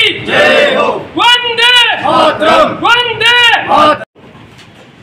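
A crowd of men shout slogans loudly in unison outdoors.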